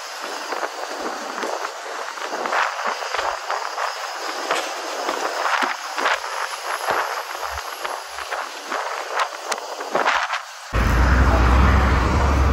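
Wind rushes loudly past an open window of a moving vehicle.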